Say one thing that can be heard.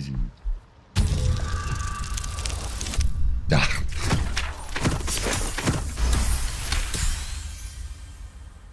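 A dice rolls and clatters.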